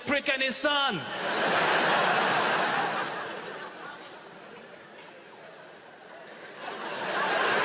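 A large audience laughs and applauds.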